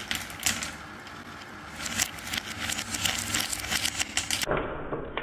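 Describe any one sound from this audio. Glass marbles roll and rattle along a wooden spiral track.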